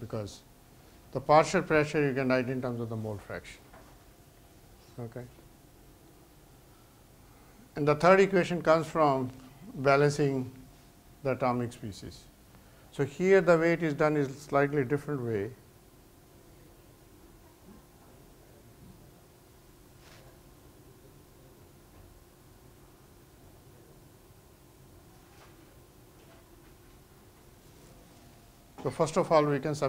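An older man lectures calmly, pausing between phrases.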